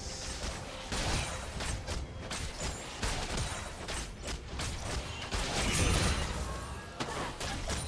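Game characters strike each other with sharp impacts.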